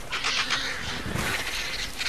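Large birds flap their wings on the ground.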